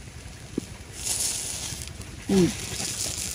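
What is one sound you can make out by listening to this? Clams sizzle and hiss on a hot grill.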